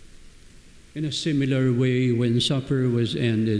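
An elderly man chants into a microphone.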